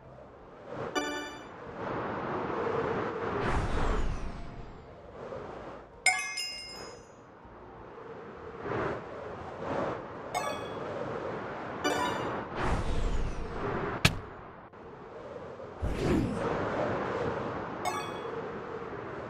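A short bright chime rings out several times.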